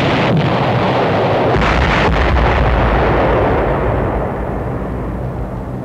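Explosions boom and rumble in heavy bursts.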